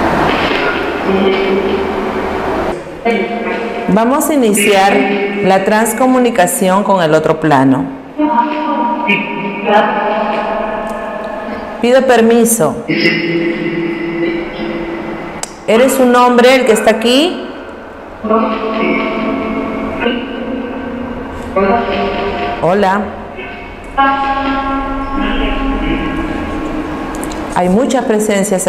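A young woman speaks calmly and close through a microphone.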